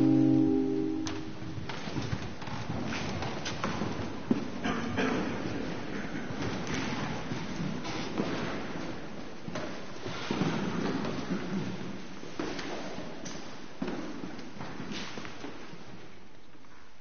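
Footsteps shuffle and knock on a hard floor in a large echoing hall.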